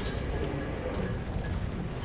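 Naval guns boom in the distance.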